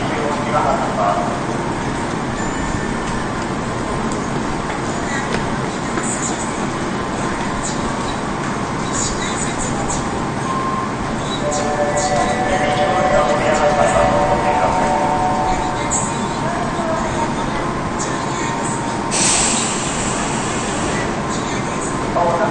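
A stopped train hums steadily in an echoing underground station.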